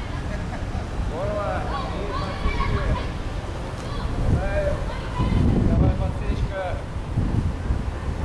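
Young people chatter and call out nearby in the open air.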